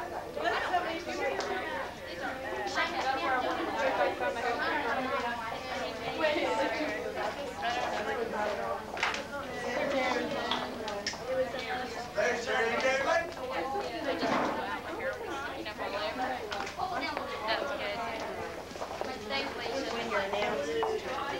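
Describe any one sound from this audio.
A crowd of young women chatters all around, close by.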